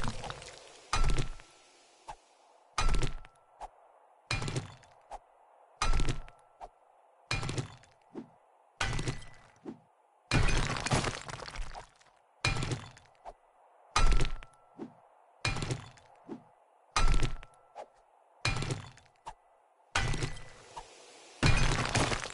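A pickaxe strikes rock again and again in steady, heavy blows.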